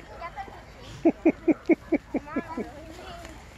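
A goat bleats nearby.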